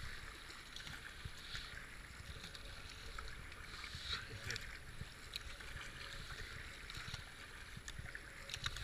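Fast river water rushes and gurgles around a kayak.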